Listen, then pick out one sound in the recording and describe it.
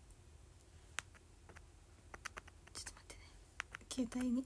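A hand taps and brushes against a phone's microphone up close.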